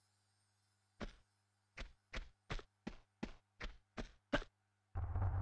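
Quick footsteps slap on stone.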